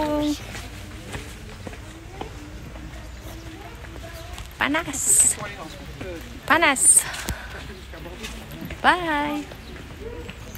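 A woman talks close by with animation, exclaiming loudly at times.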